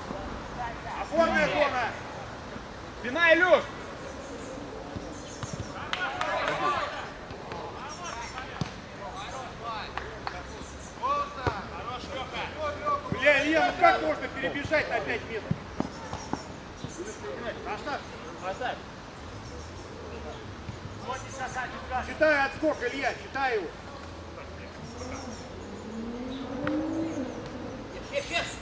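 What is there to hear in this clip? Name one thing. Boys shout to each other across an open outdoor pitch.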